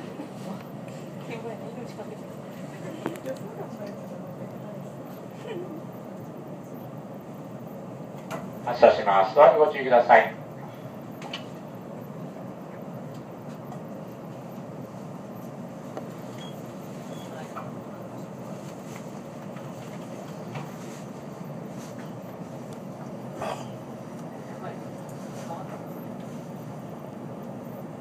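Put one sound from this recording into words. A vehicle hums steadily as it drives along a road.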